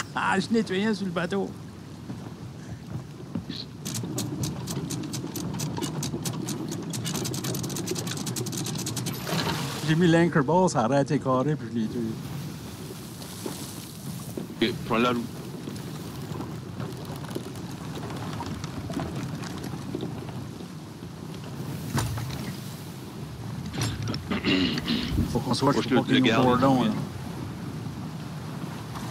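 Rough sea waves surge and crash against a wooden ship.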